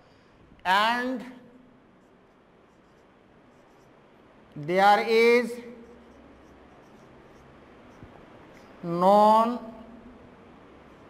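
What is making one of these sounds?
A marker squeaks softly on a whiteboard.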